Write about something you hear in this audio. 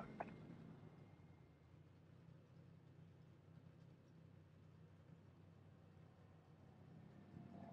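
A race car engine idles with a low, steady rumble.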